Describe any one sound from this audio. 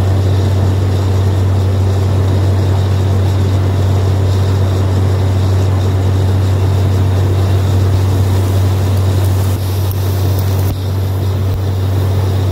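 A drilling rig engine drones loudly and steadily nearby.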